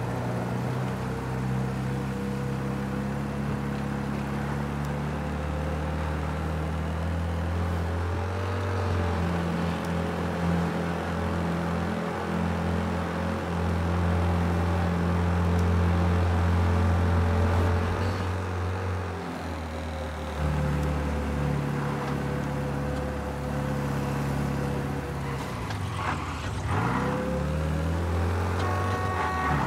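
An old car engine hums steadily, changing pitch as gears shift.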